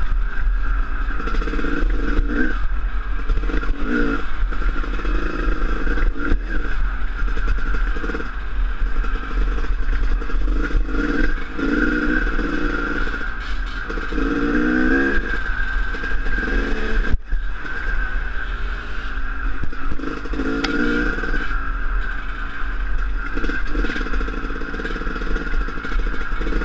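A dirt bike engine revs and drones up close.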